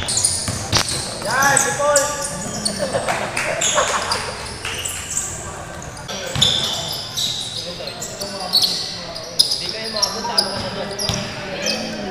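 A basketball bounces on the floor with echoing thuds.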